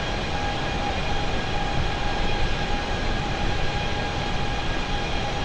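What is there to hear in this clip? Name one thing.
Jet engines roar steadily with a constant whine.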